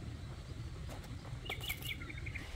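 A pepper drops into a metal bowl with a light knock.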